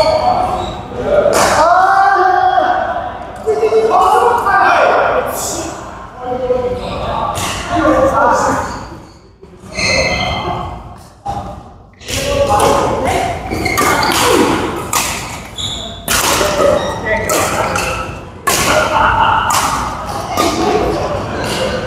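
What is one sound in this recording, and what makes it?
Shuttlecocks are hit with rackets in sharp smacks, echoing in a large hall.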